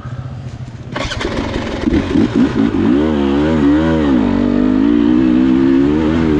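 A dirt bike pulls away, its engine roaring and rising.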